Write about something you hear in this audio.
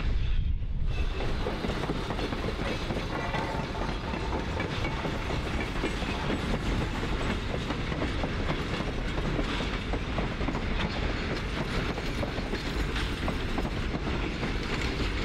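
Loaded ore cars rumble and clatter along a rail track.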